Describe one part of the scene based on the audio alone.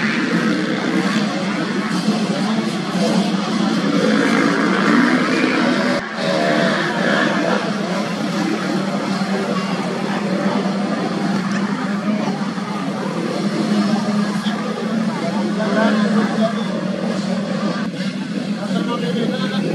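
A dirt bike engine revs up and down.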